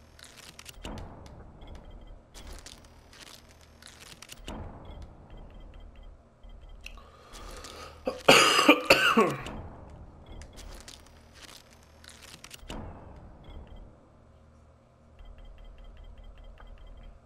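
Short clicks and chimes sound as a game menu is browsed.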